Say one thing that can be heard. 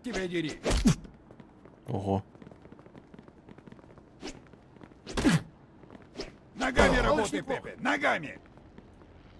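Men grunt and shout during a fistfight.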